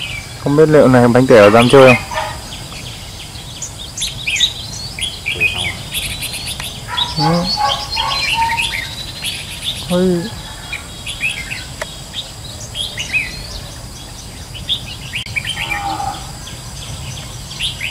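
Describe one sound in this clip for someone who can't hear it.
Songbirds chirp and whistle in quick, bright bursts.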